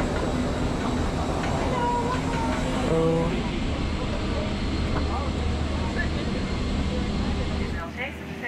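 A steady low hum drones throughout.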